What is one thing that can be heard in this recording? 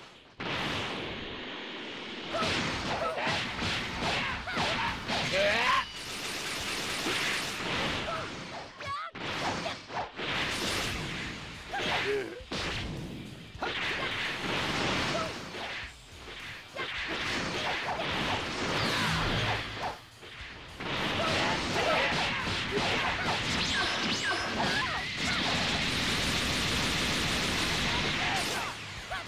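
Energy blasts whoosh and crackle.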